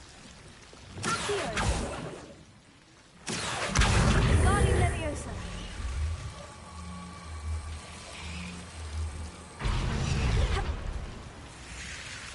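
A magical spell whooshes and hums.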